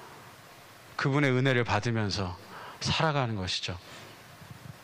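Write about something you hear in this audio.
A man speaks with emphasis through a microphone in a large hall.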